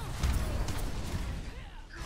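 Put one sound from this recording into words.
A rocket hammer swings with a loud whoosh.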